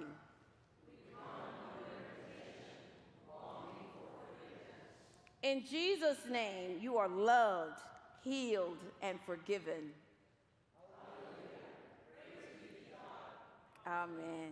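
A congregation reads out a response together in unison.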